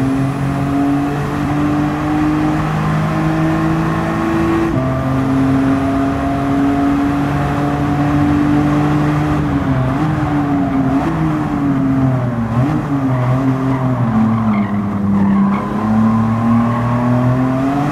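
A car engine roars steadily at high revs, its pitch dipping and rising through corners.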